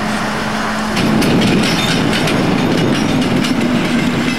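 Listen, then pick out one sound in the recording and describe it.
A railcar rolls past on the tracks.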